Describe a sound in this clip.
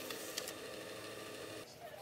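A printer whirs as it feeds out a sheet of paper.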